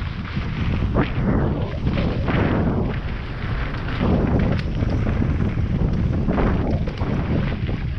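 Bicycle tyres crunch and skid over a dry dirt trail.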